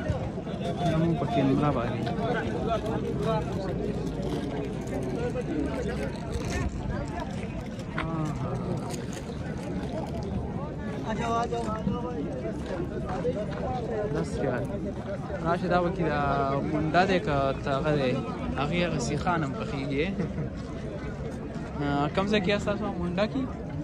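A crowd of men chatters all around outdoors.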